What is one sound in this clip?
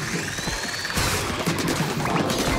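A toy-like ink gun fires rapid squelching shots.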